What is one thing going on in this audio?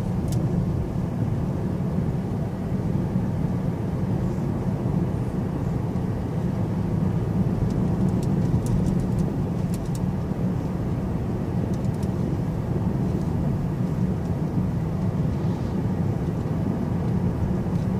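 Tyres roll steadily on asphalt.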